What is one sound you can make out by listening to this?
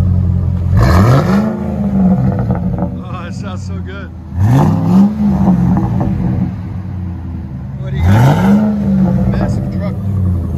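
A diesel truck engine revs up sharply and falls back, three times.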